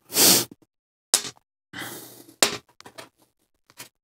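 Small metal and ceramic parts clink and tap against a metal surface.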